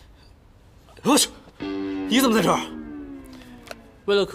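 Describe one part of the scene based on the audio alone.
A young man asks a startled question loudly.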